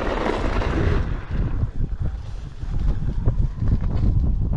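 Electric scooter tyres thump and rumble over dry grass and dirt.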